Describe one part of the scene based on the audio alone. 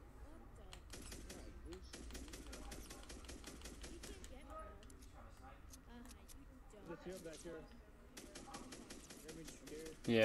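Gunshots crack repeatedly in rapid bursts.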